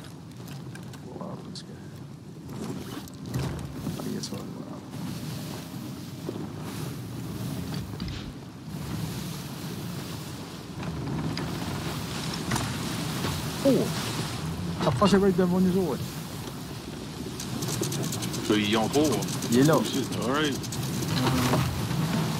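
Strong wind howls through the rigging.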